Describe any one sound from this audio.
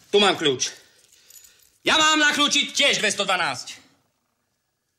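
A man speaks with strained animation close by.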